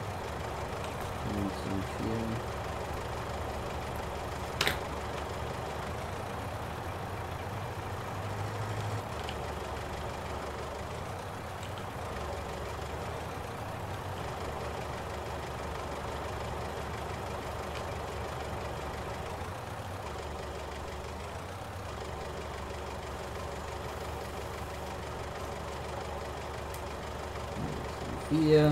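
A forklift engine hums steadily at low revs.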